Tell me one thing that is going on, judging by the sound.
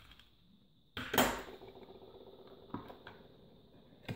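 A plastic case clicks as it is pried open.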